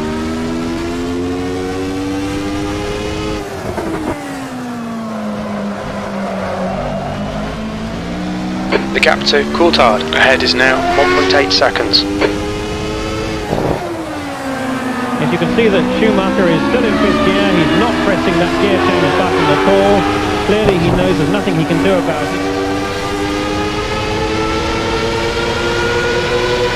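A racing car engine screams at high revs, dropping in pitch when slowing and climbing again as it speeds up.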